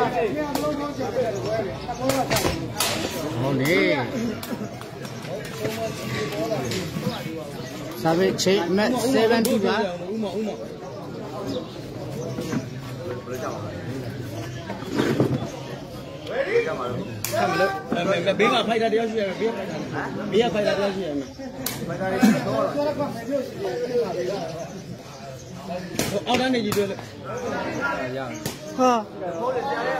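A crowd of men and boys chatters and calls out outdoors.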